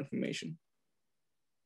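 A man speaks briefly over an online call.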